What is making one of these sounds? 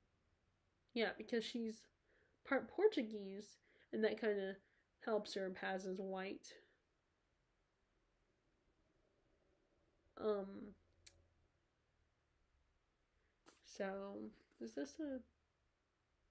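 A young woman reads aloud calmly, close to the microphone.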